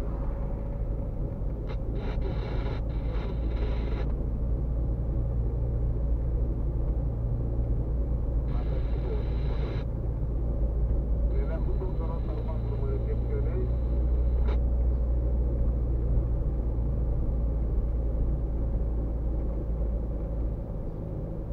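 Tyres roll on the road surface.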